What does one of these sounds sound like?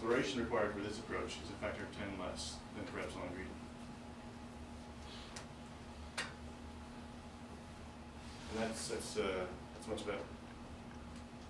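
A man lectures calmly in a room with a slight echo, heard from a distance.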